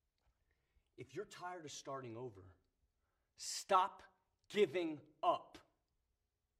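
A man speaks quietly and earnestly close by.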